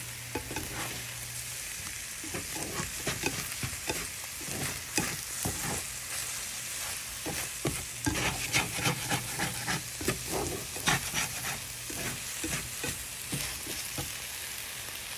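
A plastic spatula scrapes and taps against a nonstick pan.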